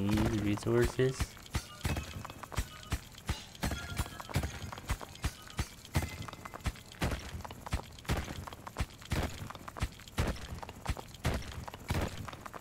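Digging effects in a retro video game thud in a quick, steady rhythm.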